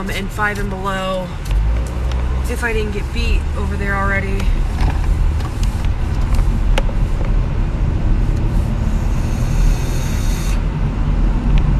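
A car engine rumbles steadily.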